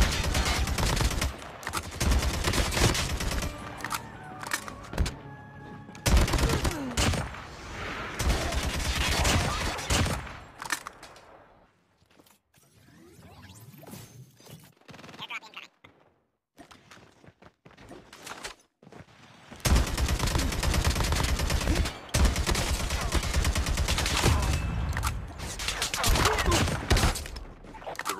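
Rapid gunfire crackles from an automatic rifle.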